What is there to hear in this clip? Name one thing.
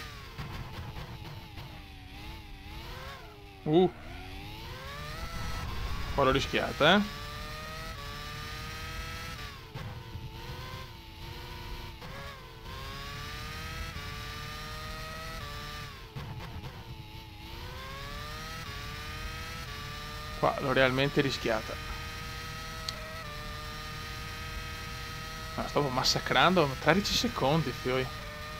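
A racing car engine screams, rising and falling in pitch as it shifts gears.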